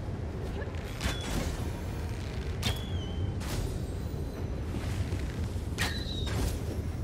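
An arrow whooshes from a bow.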